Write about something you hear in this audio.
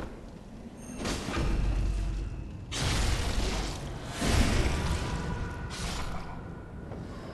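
Blades slash and strike with heavy thuds.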